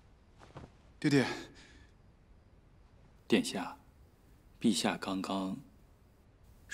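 A young man speaks in a low, anxious voice.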